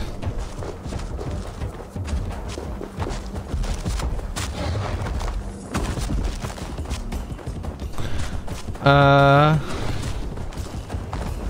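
Footsteps run over rough ground.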